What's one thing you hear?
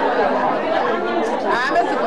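A young woman speaks up close.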